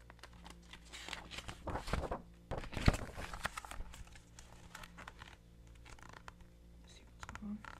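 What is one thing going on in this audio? A woman reads aloud calmly, close to a microphone.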